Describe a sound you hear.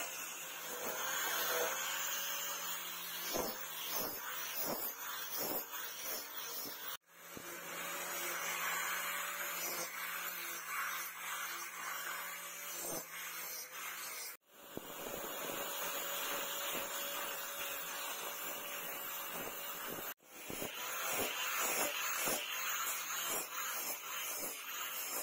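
An angle grinder whirs steadily as it sands wood.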